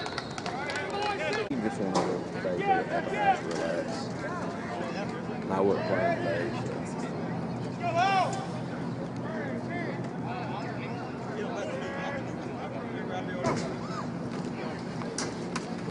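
A crowd of spectators and players shouts and cheers outdoors.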